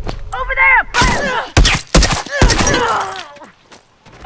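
Heavy blows land in a close scuffle.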